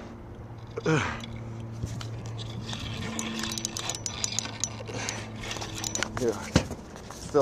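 A fishing reel clicks and whirs as it is wound in.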